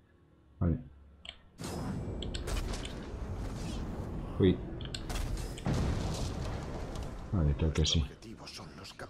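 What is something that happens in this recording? A young man talks casually through a close microphone.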